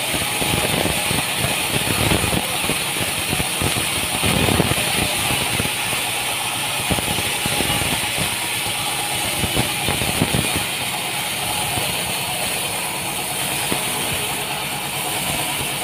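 A band saw whines steadily as it cuts through a log.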